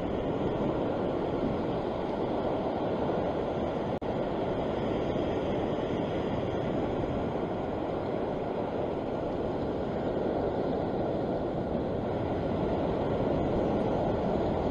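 Water rushes and splashes past a moving boat.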